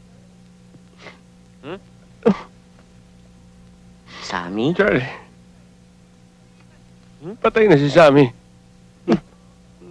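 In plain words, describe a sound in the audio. A young man answers in a strained voice.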